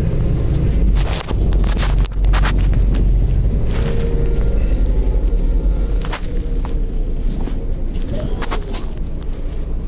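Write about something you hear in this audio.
Loose fittings rattle and knock as the bus drives.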